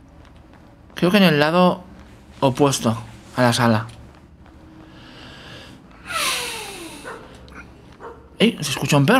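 A young man speaks with animation close to a microphone, in short bursts.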